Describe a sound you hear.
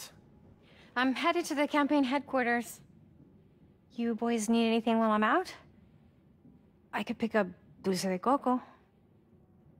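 A woman speaks warmly and calmly.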